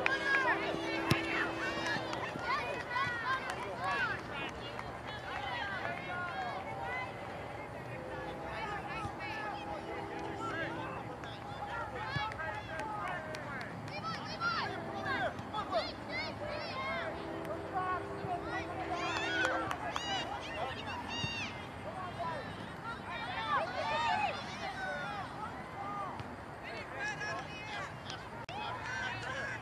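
Young soccer players call out to each other far off across an open field.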